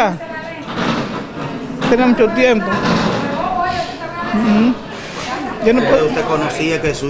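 An elderly woman speaks with emotion close to a microphone.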